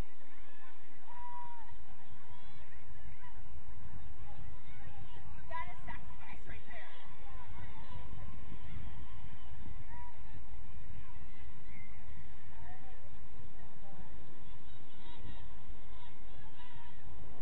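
Distant girls and adults call out and shout across the field.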